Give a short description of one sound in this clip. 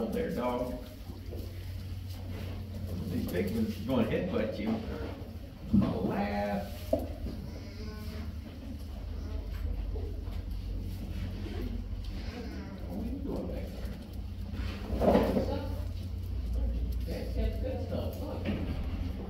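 Young goats bleat in high, wavering cries.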